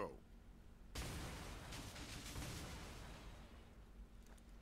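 A smoke cloud bursts with a loud rushing whoosh that slowly fades.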